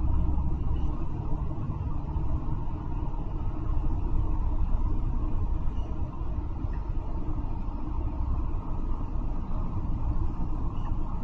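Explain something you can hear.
Tyres roar on the road beneath a moving bus.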